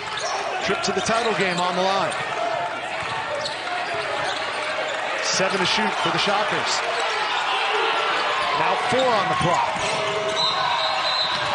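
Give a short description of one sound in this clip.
A basketball bounces on a hardwood floor in a large echoing hall.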